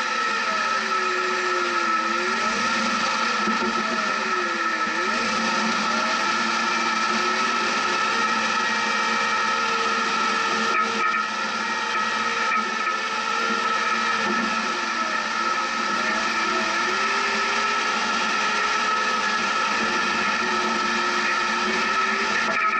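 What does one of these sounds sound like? A vehicle engine hums and revs up and down.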